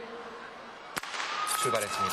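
A starting pistol fires a single sharp shot.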